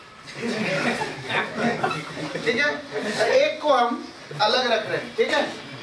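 Several men laugh nearby.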